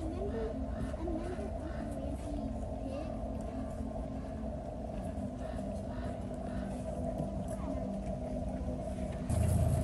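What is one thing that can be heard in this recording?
An elk crops and chews grass close by.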